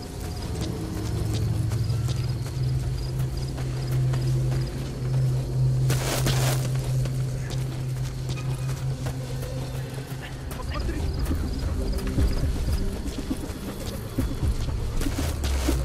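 Footsteps shuffle softly on grass and gravel.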